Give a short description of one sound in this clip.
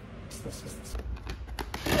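A plastic drawer clicks open.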